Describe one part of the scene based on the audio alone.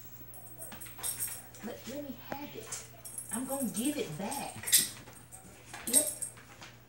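A dog sniffs loudly at close range.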